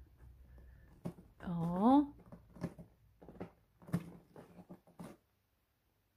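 A cat scratches at a cardboard scratcher.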